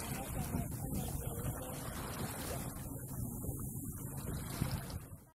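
Water rushes and splashes steadily.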